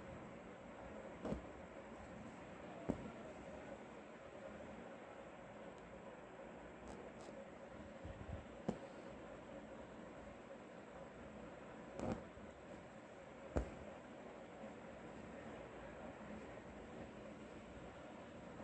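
Thread rasps softly as it is pulled through cloth.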